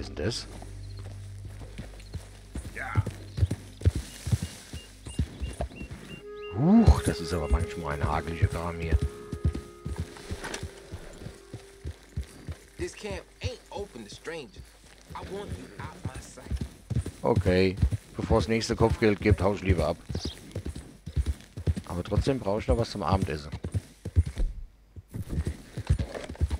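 A horse's hooves thud steadily as it gallops over grass.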